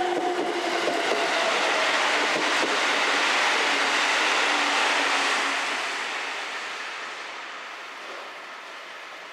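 A train rumbles along the tracks and slowly fades.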